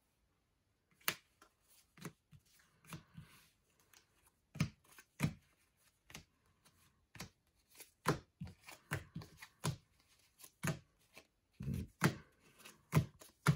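Paper cards and envelopes rustle and tap as hands handle them.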